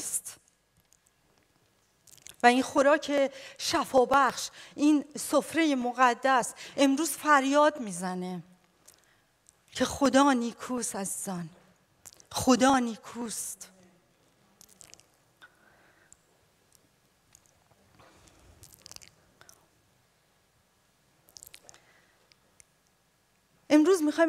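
A woman speaks with animation into a microphone, heard through loudspeakers in an echoing hall.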